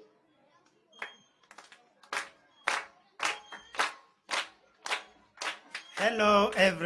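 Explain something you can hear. A group of children clap their hands in a steady rhythm.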